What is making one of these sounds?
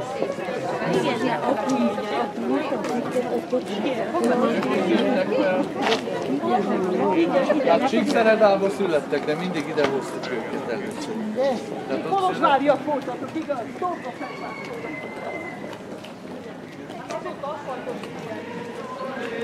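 A crowd of men and women chatter close by outdoors.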